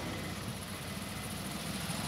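Motorcycles ride by on a highway.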